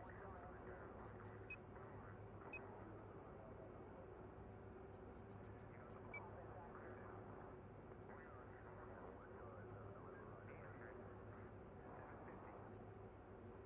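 Short electronic menu beeps click as selections change.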